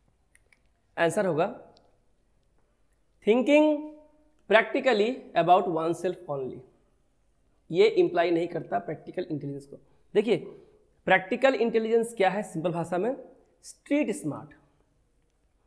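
A man speaks clearly into a close microphone, explaining in a calm, teaching voice.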